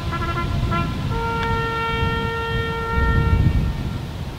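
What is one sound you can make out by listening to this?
A military brass band holds a final chord outdoors and stops.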